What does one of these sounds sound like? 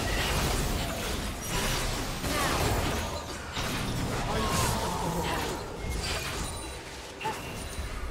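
Spell effects whoosh and crackle in a fast fight.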